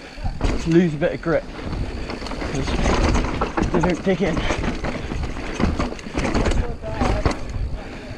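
Bicycle tyres rumble and rattle over a bumpy dirt trail.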